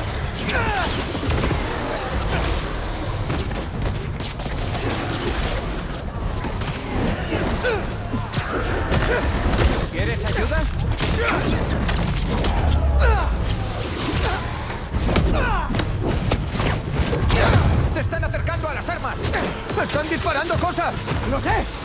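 Punches and kicks thud against enemies in a fast brawl.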